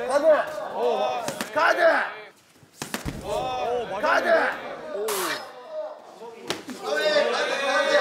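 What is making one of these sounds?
A young man exclaims in surprise with animation.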